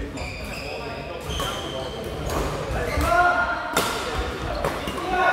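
The play echoes in a large hall.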